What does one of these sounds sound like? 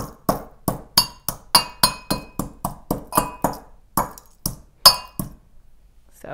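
A metal pestle pounds and clinks rapidly inside a brass mortar.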